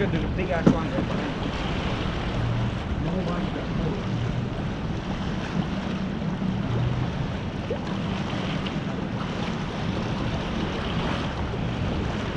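A fishing reel whirs and clicks as its line is wound in.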